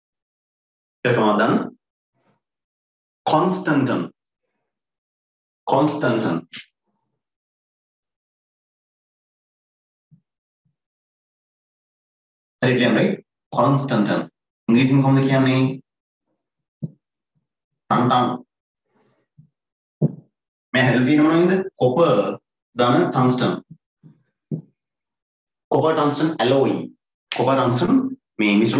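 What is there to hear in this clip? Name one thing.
A man speaks calmly in short phrases with pauses, close to a microphone.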